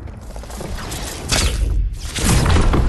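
A launch pad fires with a sudden loud whoosh.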